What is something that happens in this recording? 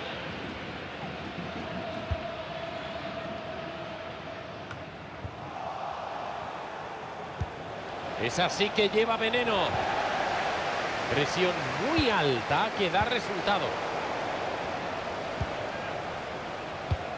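A stadium crowd cheers and chants steadily.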